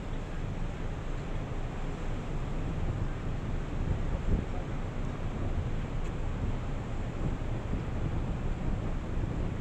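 Strong wind buffets outdoors, rumbling steadily.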